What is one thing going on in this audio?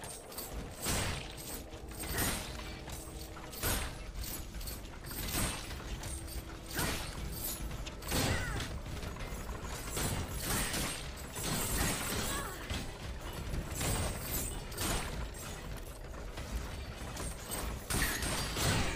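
Heavy blows land with loud impacts.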